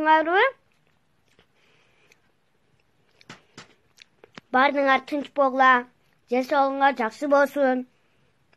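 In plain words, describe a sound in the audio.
A young child talks close to a phone microphone in a high, singsong voice.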